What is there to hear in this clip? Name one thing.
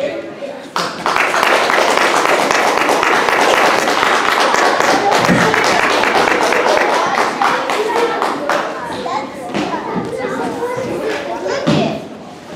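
An audience claps and cheers loudly in an echoing hall.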